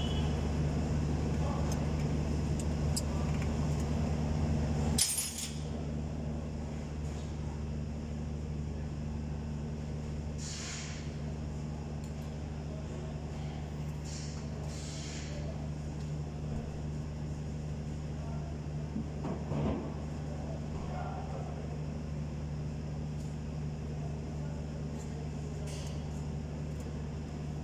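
A car engine idles steadily up close.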